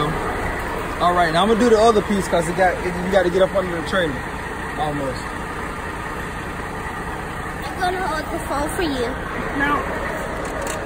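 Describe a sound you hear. A young boy talks casually close by.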